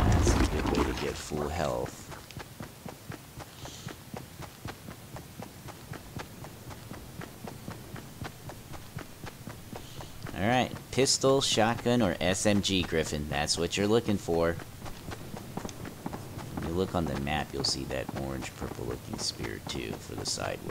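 Quick footsteps patter steadily over grass.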